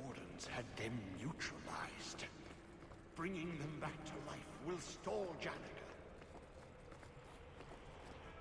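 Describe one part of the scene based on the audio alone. Footsteps tap on stone floor.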